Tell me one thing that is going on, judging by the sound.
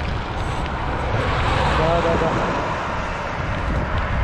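A van drives by on the road.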